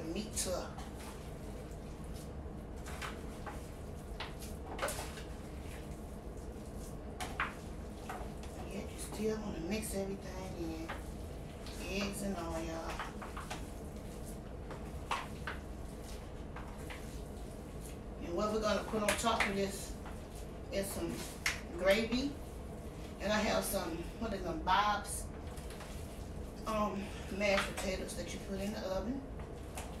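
Hands squish and knead raw ground meat.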